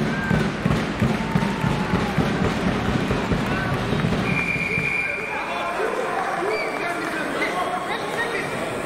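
A crowd murmurs and calls out in a large echoing hall.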